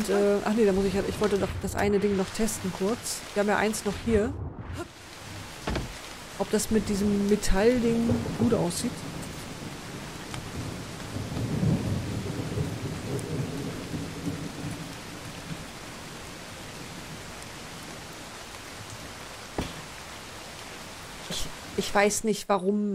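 A middle-aged woman talks with animation, close to a microphone.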